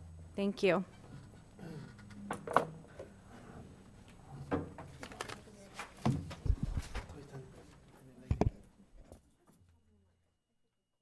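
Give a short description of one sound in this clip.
People shuffle and chairs knock as a meeting breaks up.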